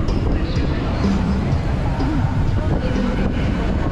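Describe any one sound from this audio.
Motorbike engines hum nearby.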